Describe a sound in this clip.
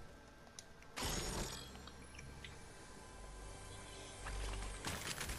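A treasure chest hums with a steady shimmering sound.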